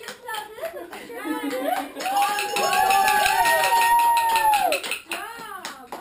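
Young women shout and call out together loudly.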